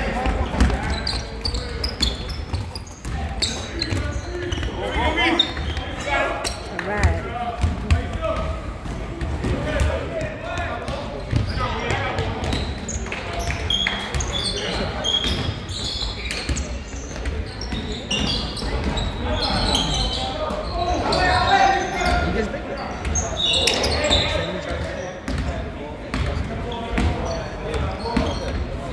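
A crowd of people chatters loudly in the background.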